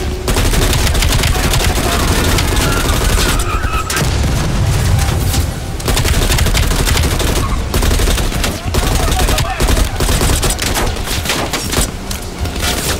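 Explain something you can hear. Rapid gunfire rattles in long bursts.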